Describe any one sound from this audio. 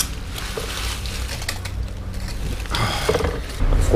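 Foil crinkles.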